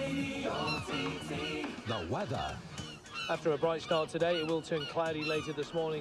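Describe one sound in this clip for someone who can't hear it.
Seagulls cry overhead.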